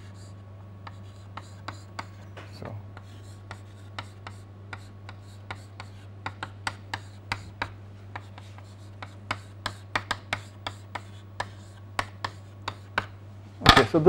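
Chalk taps and scratches on a board in quick strokes.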